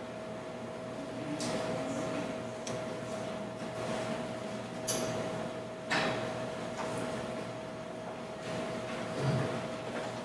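A young woman speaks quietly into a microphone in a large hall.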